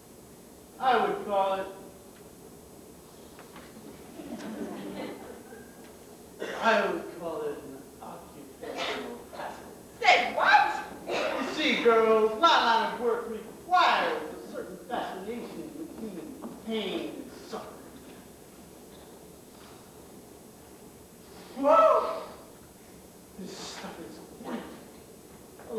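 A young man speaks loudly and with feeling.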